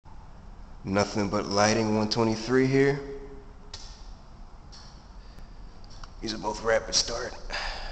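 A fluorescent light hums steadily overhead.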